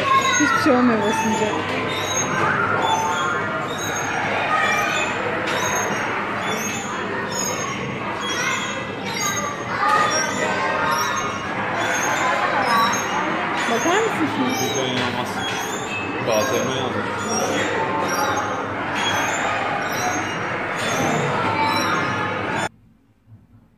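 A children's ride plays a cheerful electronic tune with a steady beat.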